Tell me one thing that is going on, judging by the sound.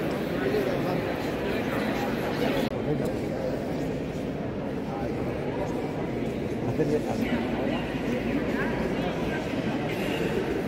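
Several men and women talk nearby.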